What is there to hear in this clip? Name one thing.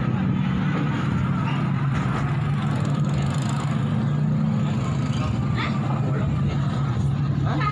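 A crowd of people talks and calls out below, heard from a distance.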